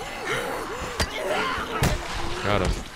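A blunt weapon strikes a body with heavy, wet thuds.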